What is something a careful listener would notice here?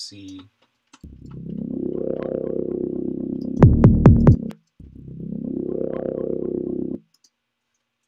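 A synthesizer plays a swelling low tone twice.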